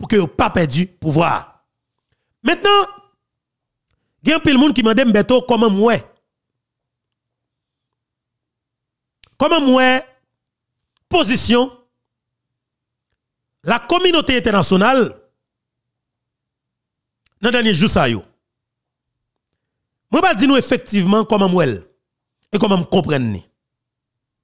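A man speaks emphatically and close into a microphone, in short bursts with pauses.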